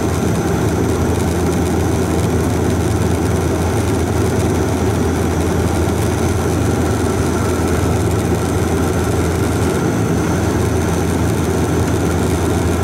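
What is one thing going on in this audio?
A jet airliner's engines roar steadily from inside the cabin.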